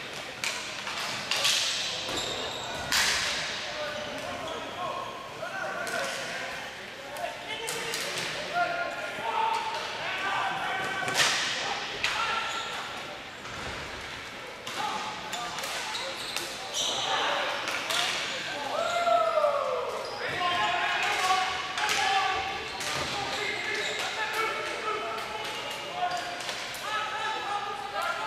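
Sticks clack sharply on a hard floor in a large echoing hall.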